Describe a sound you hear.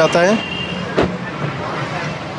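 A car door latch clicks as the door opens.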